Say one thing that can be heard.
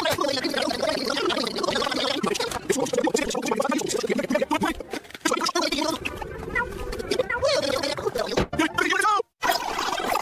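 A cartoon character speaks in a high, excited voice.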